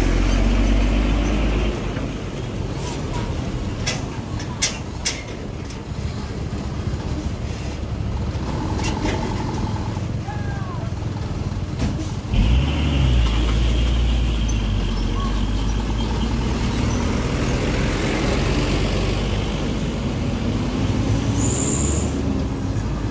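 A heavy truck engine rumbles steadily nearby.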